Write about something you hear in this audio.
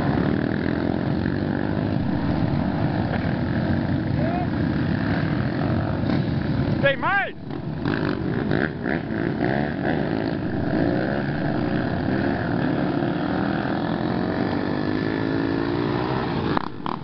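Several dirt bike engines rumble and rev nearby outdoors.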